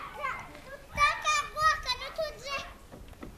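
A young child talks in a high voice nearby.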